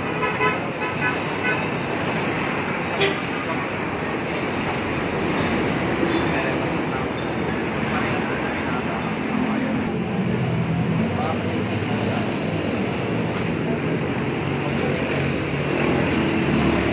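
Traffic rumbles steadily along a busy road outdoors.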